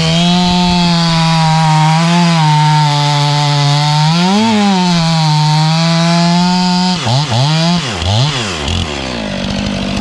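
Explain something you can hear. A chainsaw engine runs loudly up close, revving up and then winding down.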